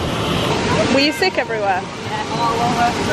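A young woman talks and laughs with excitement close by.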